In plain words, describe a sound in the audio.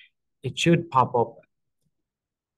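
A man speaks briefly and calmly into a microphone, close by.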